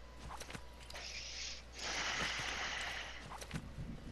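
A plant rustles and crackles as it is picked.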